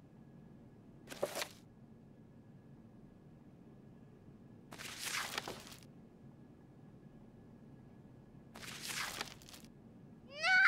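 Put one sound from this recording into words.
Pages of an album flip over.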